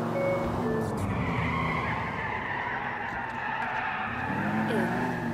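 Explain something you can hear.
Car tyres squeal through a sharp turn.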